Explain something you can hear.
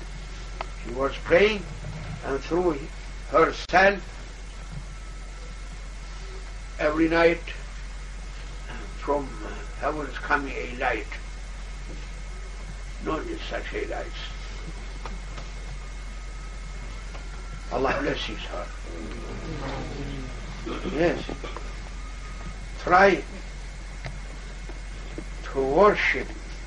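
An elderly man speaks calmly in short bursts with pauses, close by.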